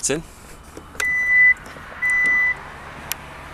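A car's power tailgate beeps twice as it moves.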